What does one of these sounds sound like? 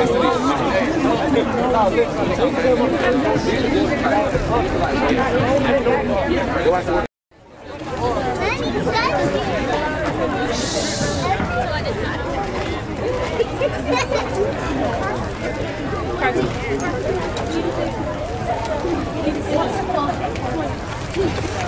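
Drums beat a steady rhythm.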